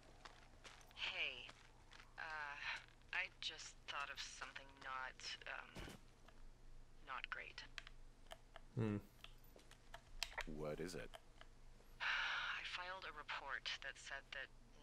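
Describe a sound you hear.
A woman talks hesitantly over a walkie-talkie.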